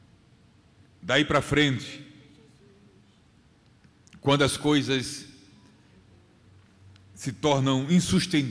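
A middle-aged man speaks slowly and with feeling into a microphone, heard through loudspeakers with pauses between phrases.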